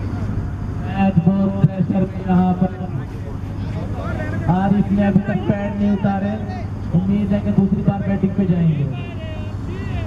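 Men call out to each other loudly outdoors.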